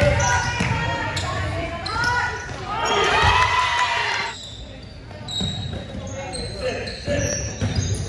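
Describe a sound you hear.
Young women players call out to each other across the hall.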